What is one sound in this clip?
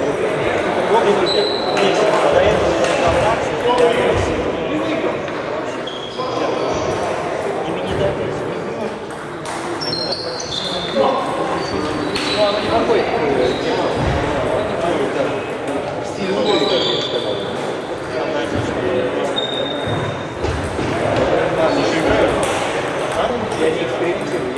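Ping-pong balls click on tables and paddles, echoing in a large hall.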